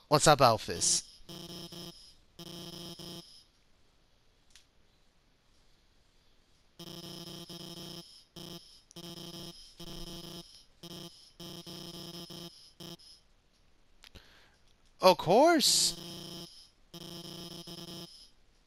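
Electronic dialogue beeps chatter in quick, buzzy bursts.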